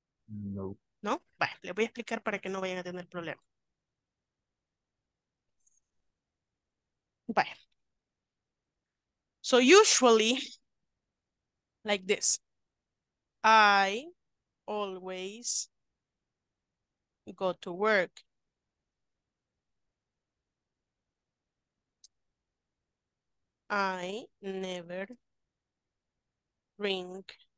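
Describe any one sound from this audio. A woman speaks calmly over an online call, in short phrases with pauses.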